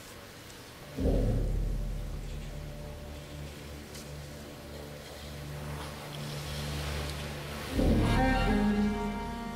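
Orchestral music plays through loudspeakers in a large echoing arena.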